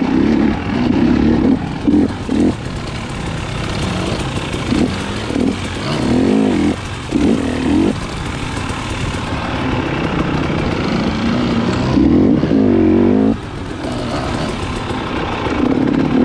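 Tyres crunch over dry leaves and dirt.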